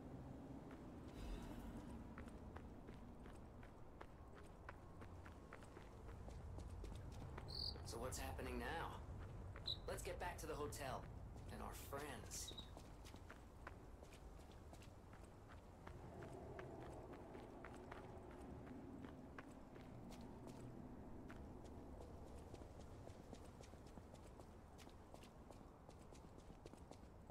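Footsteps run quickly on stone.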